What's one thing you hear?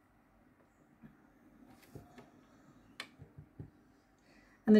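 Cards softly tap and slide on a wooden table.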